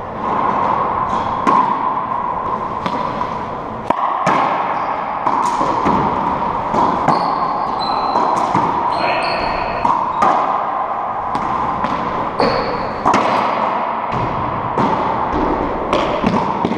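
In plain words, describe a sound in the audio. A ball smacks sharply off the walls, echoing loudly in a bare hall.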